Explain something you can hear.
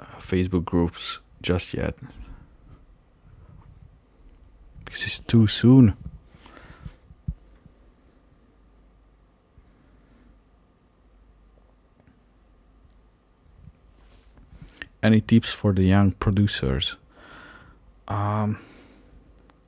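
A man talks casually into a nearby microphone, in bursts with pauses.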